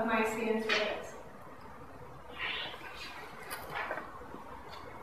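A young woman speaks calmly in a room.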